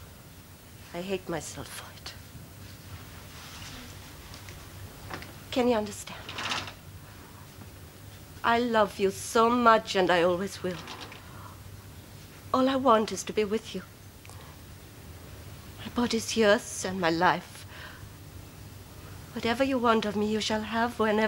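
A woman speaks calmly in short phrases, with pauses between them.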